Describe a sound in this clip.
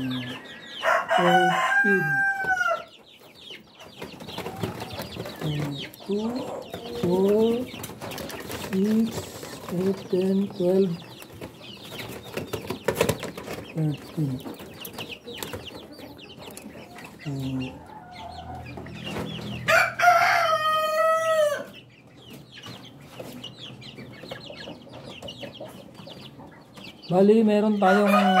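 Ducklings peep and chirp close by.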